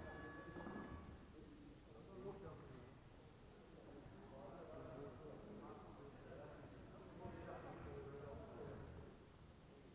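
Two men talk calmly nearby.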